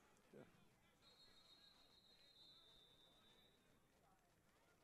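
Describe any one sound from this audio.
A referee's whistle blows faintly and steadily.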